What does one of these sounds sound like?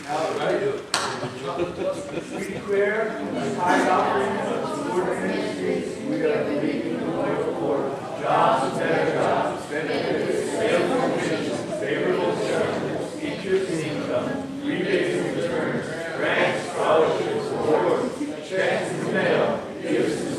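An electric guitar plays along with the singing.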